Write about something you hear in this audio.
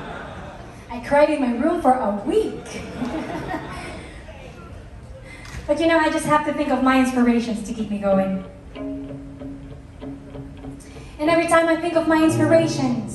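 A woman sings into a microphone through loudspeakers in a large hall.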